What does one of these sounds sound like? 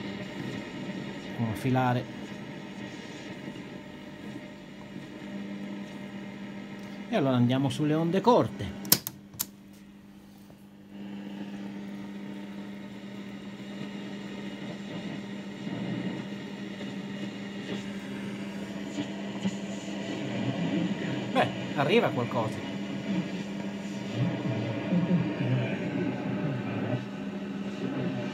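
A radio crackles and hums steadily with static.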